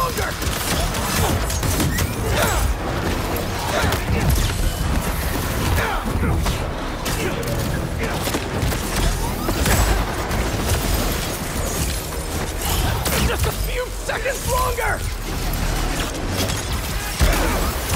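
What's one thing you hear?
Fight sounds of blows, blasts and impacts clash in quick succession.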